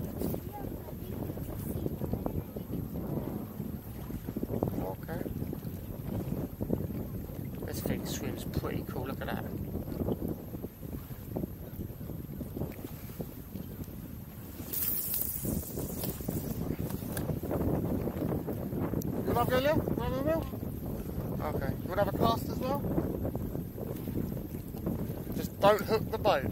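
Wind blows across the microphone outdoors on open water.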